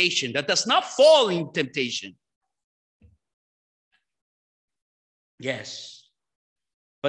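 A man speaks with animation into a microphone, heard through a loudspeaker in an echoing hall.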